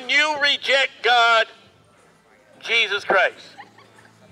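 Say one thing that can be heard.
A woman speaks loudly and with animation through a loudspeaker outdoors.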